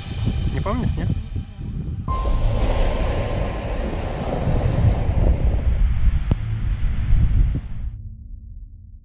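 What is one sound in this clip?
Wind gusts and rumbles outdoors, then fades away.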